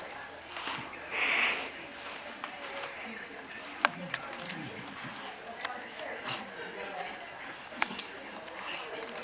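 A small dog scratches and rustles at a blanket in a wicker basket.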